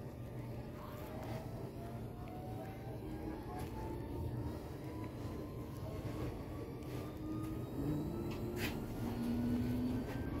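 A train rumbles along with a low steady drone.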